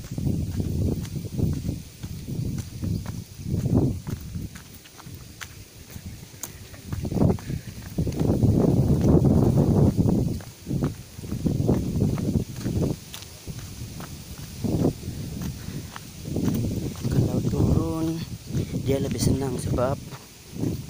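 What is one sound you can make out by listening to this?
Wind buffets loudly in gusts outdoors.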